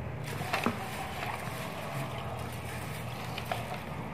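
A hand swishes grains around in water in a metal bowl.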